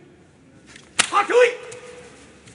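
Two heavy bodies slap together with a thud.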